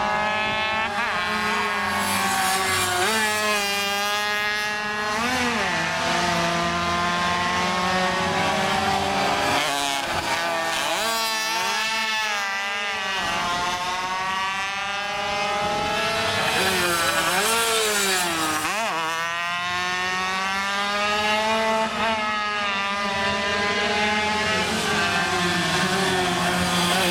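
Motorcycle engines roar loudly and rev up and down as they pass close by.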